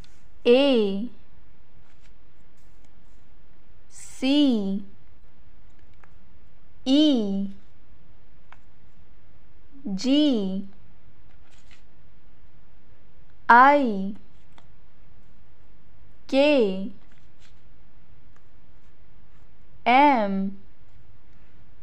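Wooden letters tap softly onto paper.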